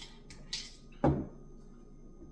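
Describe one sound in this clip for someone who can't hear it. A plastic bottle clunks down on a hard surface.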